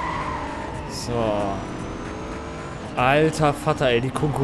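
Engines rev and whine as cars change gear.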